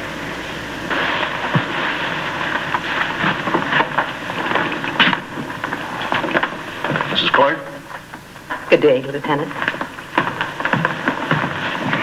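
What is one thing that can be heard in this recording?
A woman chatters cheerfully among several voices.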